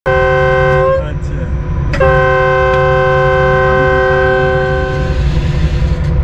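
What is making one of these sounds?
A diesel locomotive horn blasts twice, long and loud.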